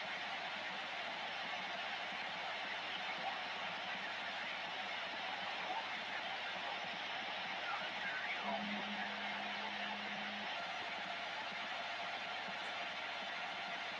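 A radio loudspeaker hisses with steady static.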